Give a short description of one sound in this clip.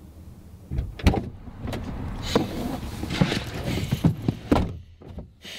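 A car door opens and a man climbs into the seat with rustling and thumps.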